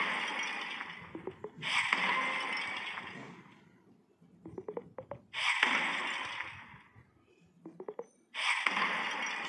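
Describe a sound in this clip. Blocks shatter with a crumbling, hissing burst.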